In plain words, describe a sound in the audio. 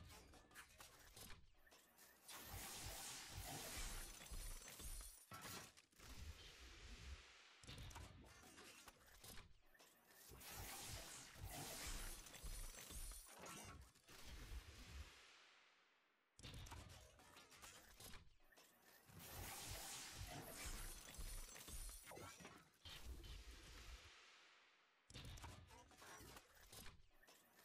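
Metal clanks and thuds as a game's loot box lands and unfolds.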